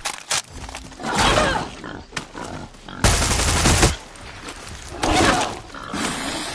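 A wild boar squeals and grunts.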